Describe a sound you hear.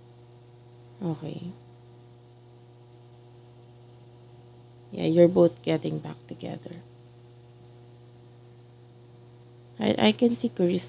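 A young woman sings softly into a close microphone, in short phrases with pauses.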